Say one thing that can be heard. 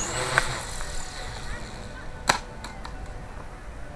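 A radio-controlled model helicopter crashes onto gravel.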